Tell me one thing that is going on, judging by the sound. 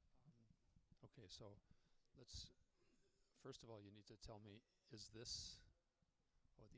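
A man speaks briefly into a microphone close by.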